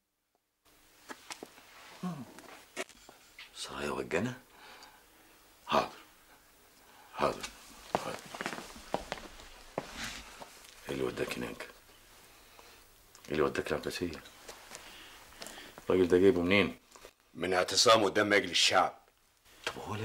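An older man speaks tensely close by.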